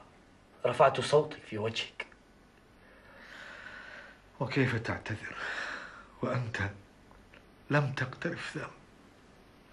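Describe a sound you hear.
A man speaks quietly and gently, close by, in short phrases with pauses.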